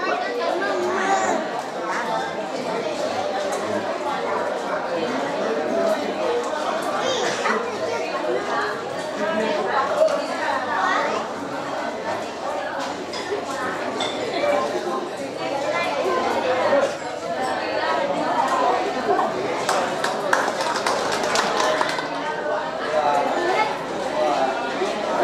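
Several people murmur quietly in the background.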